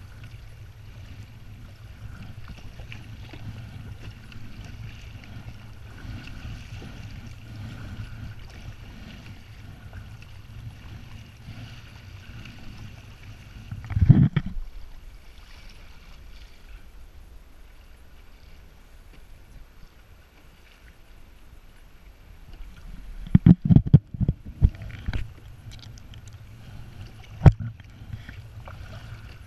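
Wind rumbles across open water.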